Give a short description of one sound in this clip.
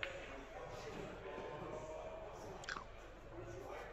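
Snooker balls click together on a table.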